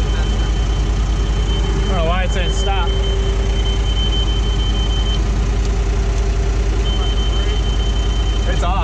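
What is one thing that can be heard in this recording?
A diesel engine idles with a steady, throbbing rumble close by.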